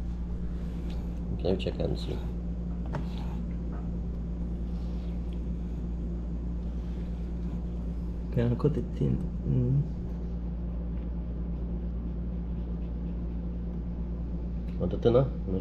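A knife slices through a tomato.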